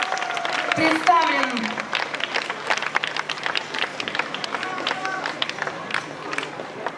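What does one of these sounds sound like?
A crowd claps along in rhythm.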